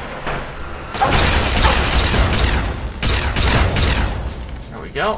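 A gun fires with loud crackling energy blasts.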